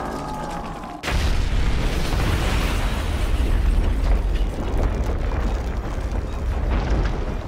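Flames roar in a deep, rumbling blast.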